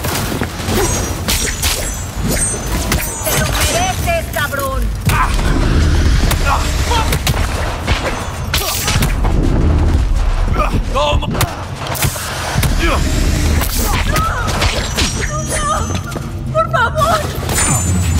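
Heavy blows thud against bodies in a fight.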